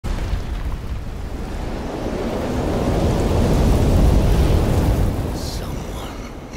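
A deep, roaring rumble swells and then fades as a cloud of dust billows.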